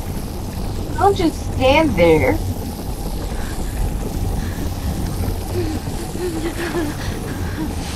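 A young woman speaks with animation into a microphone, close by.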